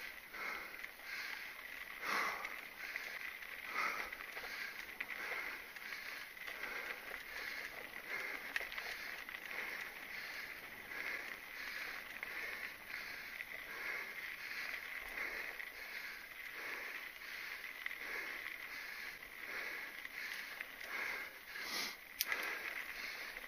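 Mountain bike tyres roll and crunch over a dirt trail.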